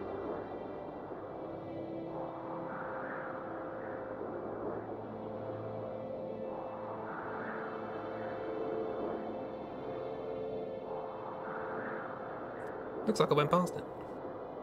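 Wind howls in slow, rising and falling gusts.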